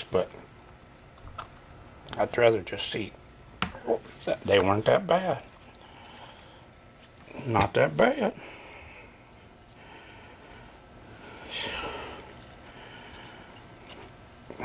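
Small metal parts click and clatter as they are handled.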